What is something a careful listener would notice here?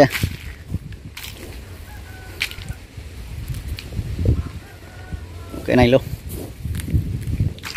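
Footsteps crunch on dry leaves and soil.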